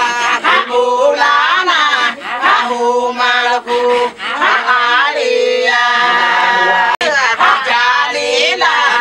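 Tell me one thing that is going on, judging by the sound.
A group of women sing loudly together nearby.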